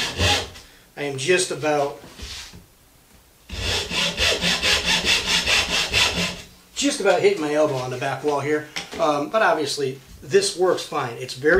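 A middle-aged man talks calmly and clearly, close by.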